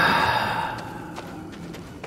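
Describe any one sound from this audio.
Footsteps run across stony ground.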